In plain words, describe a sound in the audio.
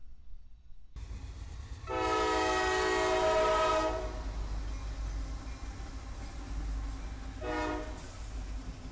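Diesel locomotives rumble heavily as they pass close by.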